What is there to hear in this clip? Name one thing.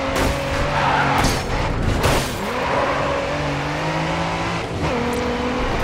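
A sports car engine revs hard.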